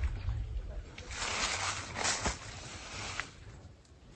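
Leaves rustle in the wind.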